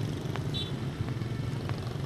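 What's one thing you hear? Footsteps of high heels click on a hard floor.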